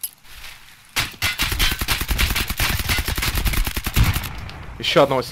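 An automatic rifle fires a long rapid burst close by.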